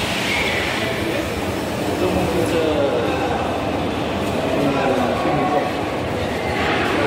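Men and women chatter nearby in a large echoing hall.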